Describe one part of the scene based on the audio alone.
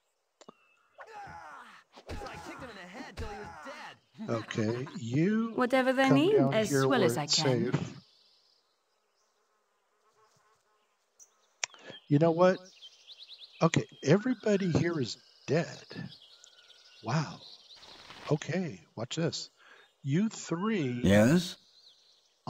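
An older man talks calmly and close to a microphone.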